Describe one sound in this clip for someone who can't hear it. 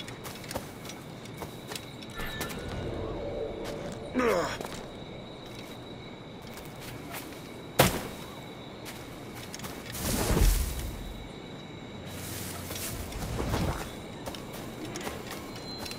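Footsteps patter on the ground and wooden boards.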